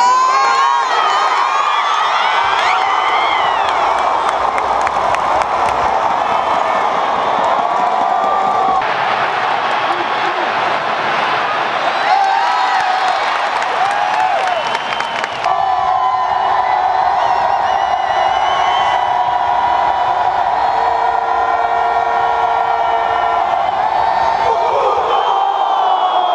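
A large crowd cheers and chants in a large indoor stadium.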